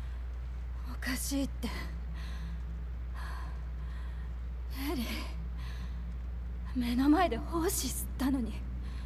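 A young woman speaks with distress, close by.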